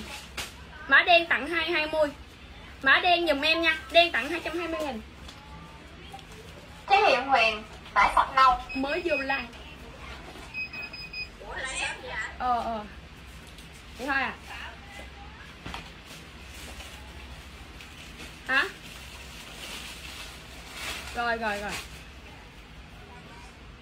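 Fabric rustles as clothes are handled.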